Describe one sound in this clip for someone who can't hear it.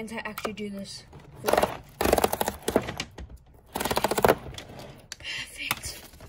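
Cardboard tears as a box flap is pulled open.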